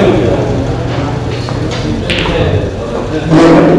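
A cue strikes a ball on a pool table.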